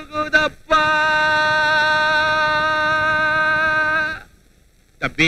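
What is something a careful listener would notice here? An elderly man wails and sobs loudly, close by.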